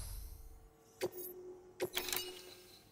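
Menu selections click and chime.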